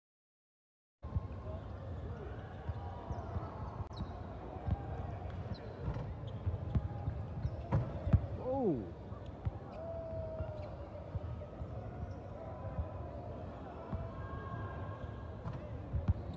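A crowd of young men chatters in the background.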